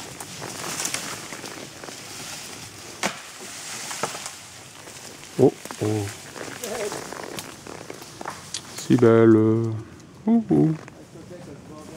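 Horse hooves thud on a soft forest path.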